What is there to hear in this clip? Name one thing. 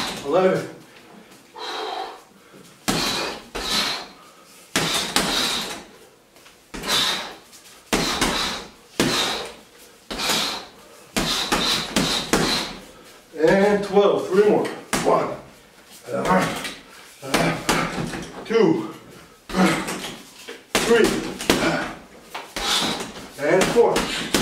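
Punches thud against a heavy punching bag.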